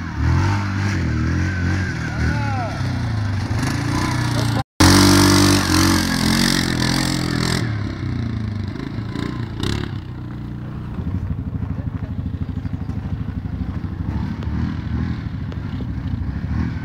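A single-cylinder ATV engine revs hard under load.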